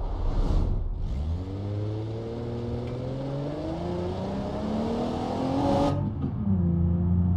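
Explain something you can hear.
A car engine revs up steadily as the car speeds up, then drops back to a low hum.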